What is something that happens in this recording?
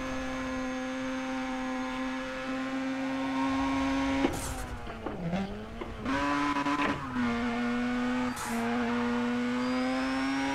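A racing car engine drones at high revs, briefly dropping and then rising again.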